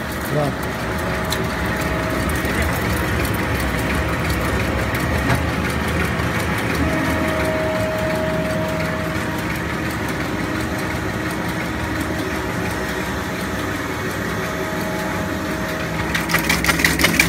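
A shredder machine grinds and rattles loudly.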